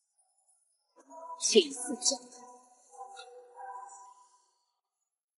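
A young woman speaks softly and close.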